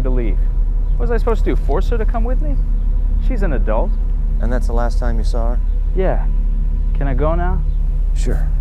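A young man speaks with a puzzled tone nearby.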